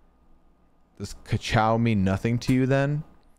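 A man speaks close to a microphone in a drawn-out, animated voice.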